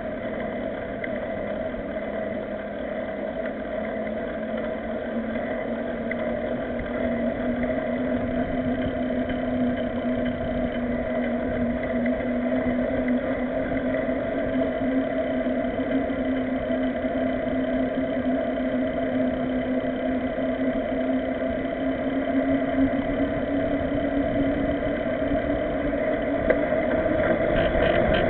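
Wind rushes steadily past while riding a bicycle.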